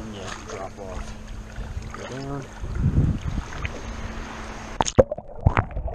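Small waves slosh and splash close by.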